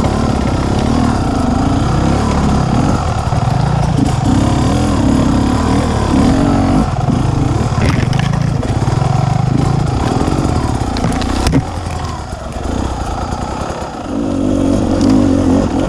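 Dry leaves and twigs crunch under tyres.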